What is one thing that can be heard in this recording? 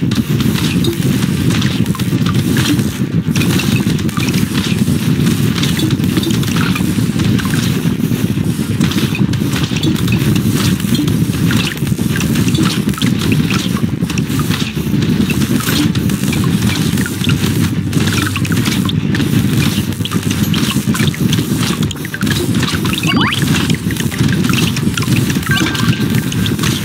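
Video game weapons fire in rapid bursts, with small pops and crackles.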